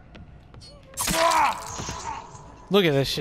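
A blade slashes through flesh with a wet thud.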